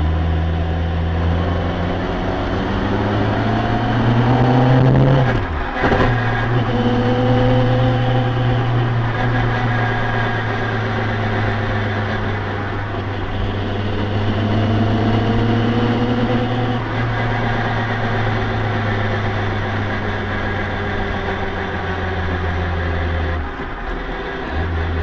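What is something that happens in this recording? A car engine hums loudly close by, its pitch rising and then dropping with a gear change.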